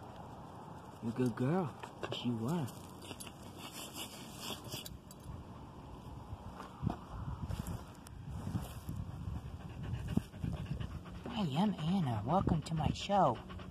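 A dog whines in high, wavering cries close by.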